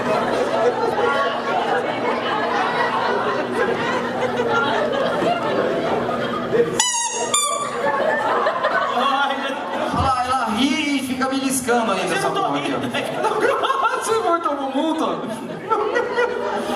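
An audience murmurs and laughs.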